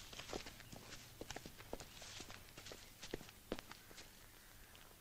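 People walk with crunching footsteps on an outdoor path.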